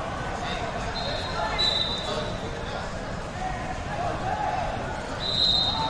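A referee blows short shrill whistle blasts.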